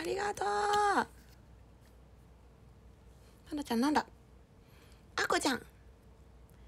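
A young woman speaks close up in short, lively bursts, with a high, singing voice.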